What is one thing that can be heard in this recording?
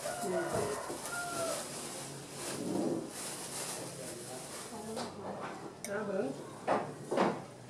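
A metal spoon scrapes against a ceramic plate.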